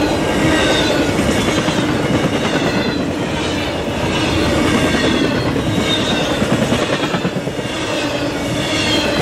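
A long freight train rumbles past nearby.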